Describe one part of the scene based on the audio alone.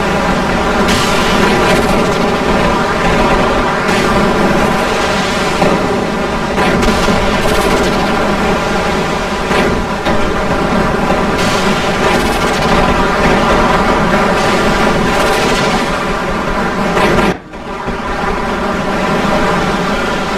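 Laser weapons zap and crackle rapidly.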